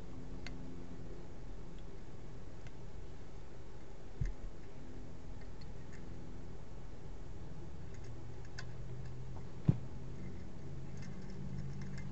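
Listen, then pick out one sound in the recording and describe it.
Brass fittings click and clink as they are handled.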